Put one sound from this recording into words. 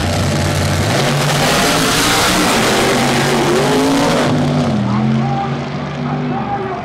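Race cars roar off the line and scream away down the strip.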